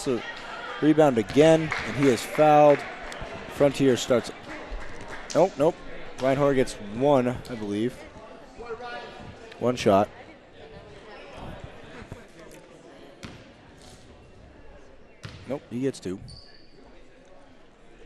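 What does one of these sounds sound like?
A crowd chatters faintly in a large echoing gym.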